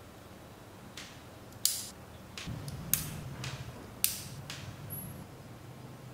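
Small plastic pen parts click and tap on a wooden table.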